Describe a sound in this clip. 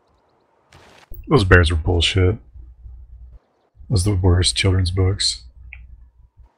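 A man talks with animation through a microphone, heard as on an online call.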